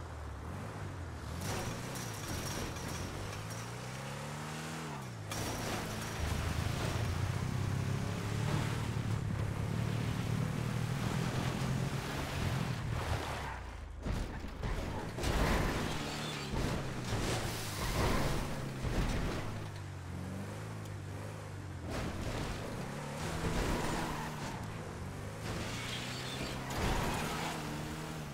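An armored truck's engine revs as it drives.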